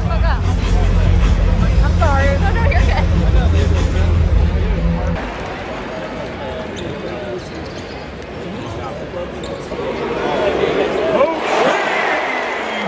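A large crowd murmurs and cheers in a big echoing arena, swelling louder near the end.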